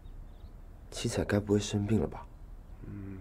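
A second young man answers, close by.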